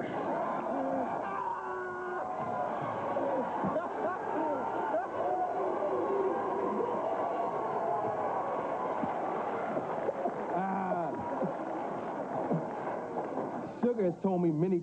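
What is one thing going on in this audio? Several men laugh loudly and boisterously.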